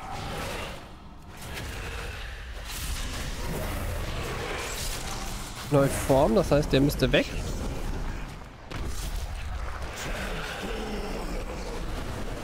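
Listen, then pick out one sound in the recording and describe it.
Magic lightning crackles and booms during a fight.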